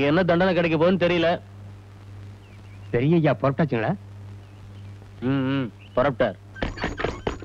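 A man speaks with strong feeling, close by.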